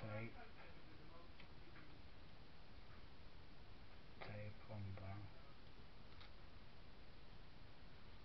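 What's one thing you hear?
Paper rustles softly as hands fold it.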